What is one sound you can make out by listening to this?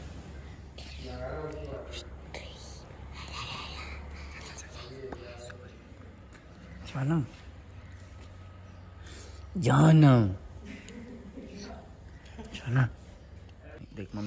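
A young boy talks and laughs close by.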